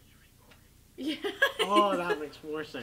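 Young people laugh together.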